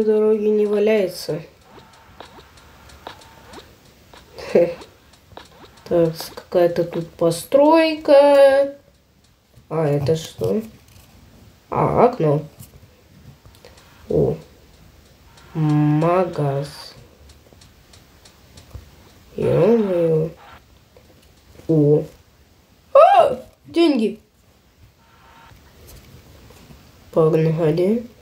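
A young child talks with animation close to a microphone, in short bursts with pauses.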